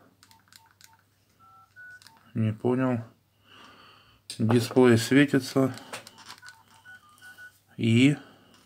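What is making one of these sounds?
A mobile phone plays short electronic beeps.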